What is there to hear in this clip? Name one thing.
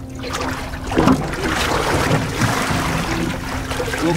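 Water splashes as a squid is lifted out.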